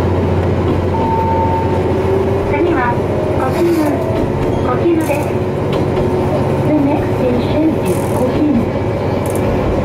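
Train wheels squeal and whine on the rails.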